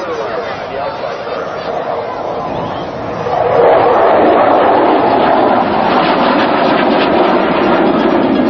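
A jet engine roars overhead, growing louder as it passes.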